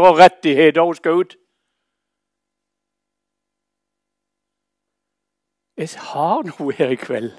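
An elderly man speaks calmly and clearly through a microphone.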